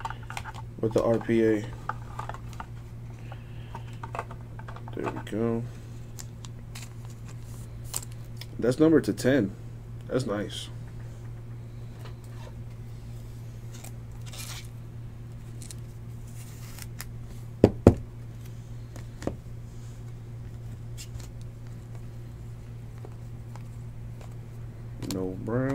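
Trading cards in plastic sleeves rustle and click as they are handled up close.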